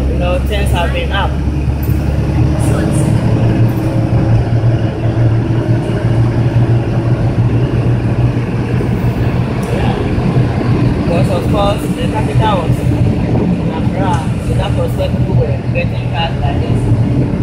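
A minibus engine rumbles steadily from inside the cabin.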